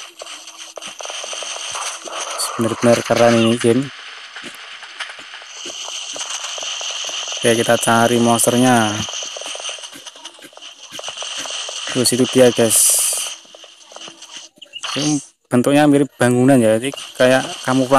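Footsteps run quickly across hard ground.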